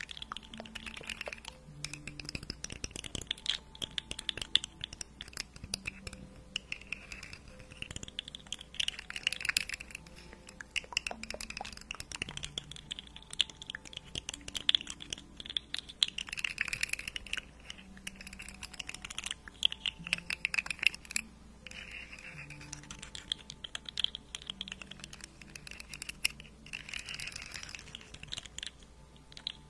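A young woman whispers softly and close to a microphone.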